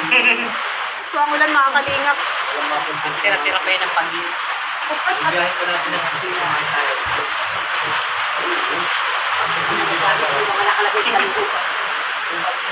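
Rain patters steadily on a metal roof.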